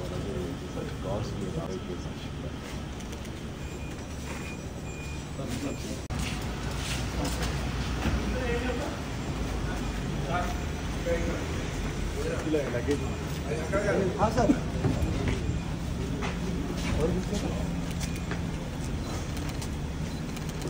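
A crowd of men chatters and calls out nearby.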